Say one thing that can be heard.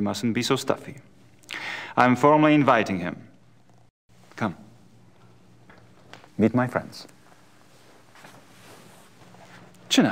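A man speaks calmly and smoothly, close by.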